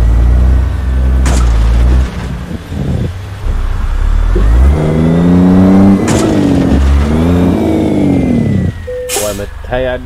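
A heavy truck engine rumbles and revs.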